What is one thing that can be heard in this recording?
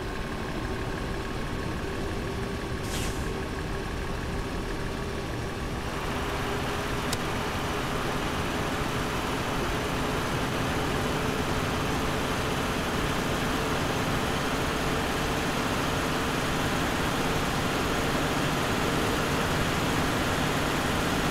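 A diesel semi-truck engine drones and rises in pitch as the truck accelerates.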